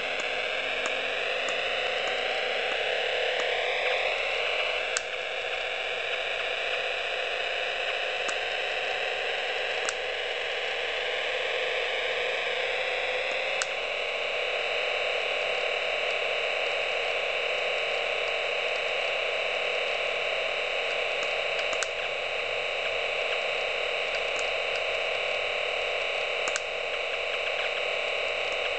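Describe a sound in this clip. A racing game's engine whines steadily, rising in pitch as the kart speeds up.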